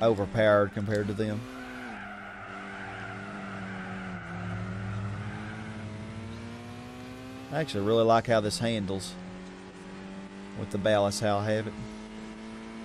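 Tyres squeal in short bursts through corners.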